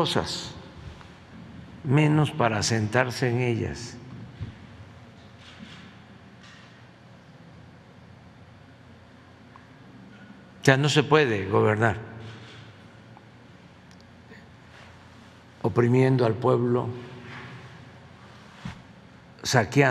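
An elderly man speaks slowly and calmly into a microphone, with long pauses.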